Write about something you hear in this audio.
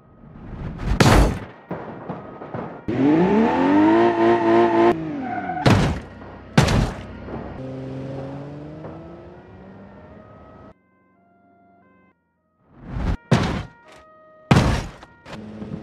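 A vehicle smashes into something with loud crunching bangs.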